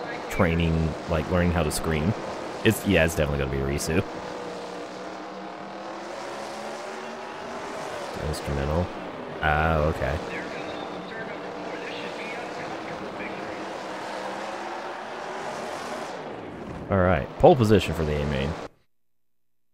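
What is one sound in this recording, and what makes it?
A race car engine drones steadily at high revs.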